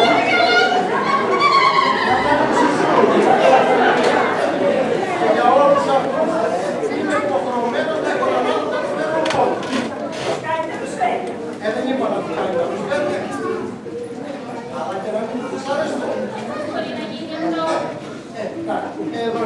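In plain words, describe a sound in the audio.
A young woman speaks with animation in a hall.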